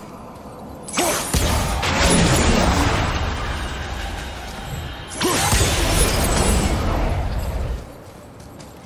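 A magical energy blast crackles and bursts.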